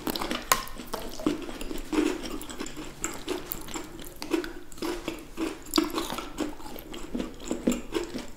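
A woman chews loudly with wet mouth sounds close to a microphone.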